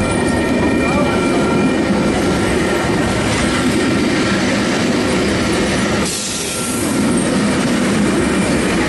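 Railway carriages rumble and clatter slowly past close by.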